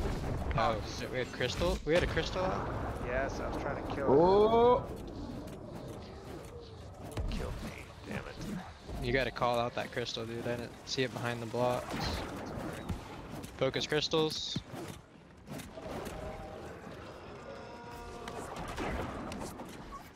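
Heavy blows and slashes strike in combat.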